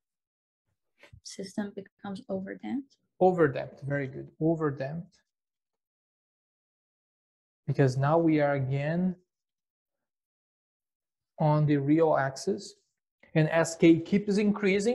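A middle-aged man lectures calmly into a close microphone, in short bursts with pauses.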